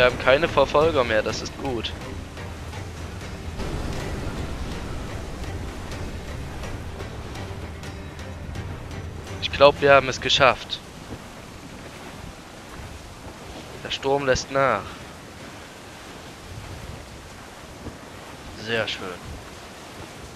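Rough waves crash and surge against a wooden ship.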